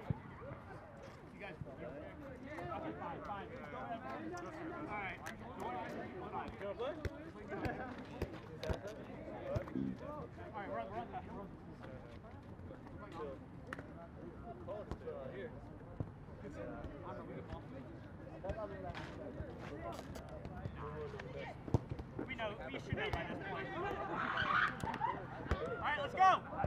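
Young men talk and call out to each other across an open field outdoors.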